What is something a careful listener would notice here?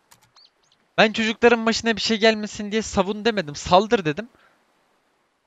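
A young man talks animatedly and close into a microphone.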